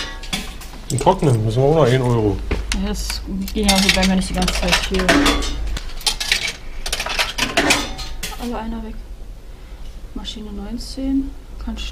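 Coins clink and jingle in a hand.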